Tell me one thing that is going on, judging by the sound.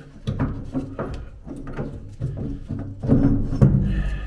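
A wrench clicks and scrapes against metal.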